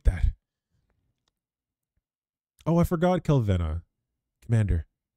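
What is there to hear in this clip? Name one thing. A young man speaks in short bursts with animation, close to a microphone.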